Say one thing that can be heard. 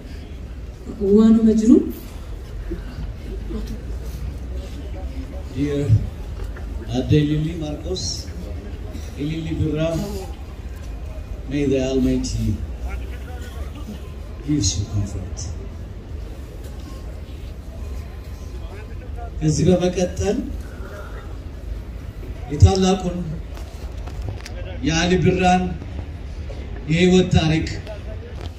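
A man sings through loudspeakers outdoors, in short phrases with pauses.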